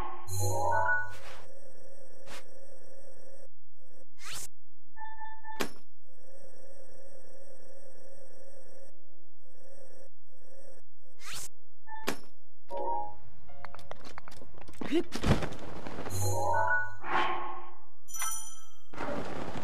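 Soft menu chimes and clicks sound in short bursts.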